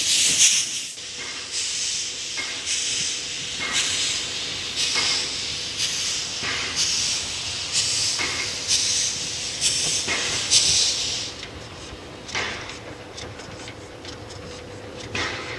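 A steam locomotive chuffs in rhythmic bursts as it approaches.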